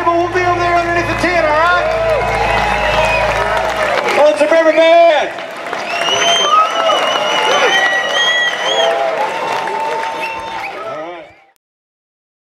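A band plays acoustic guitars and fiddle live.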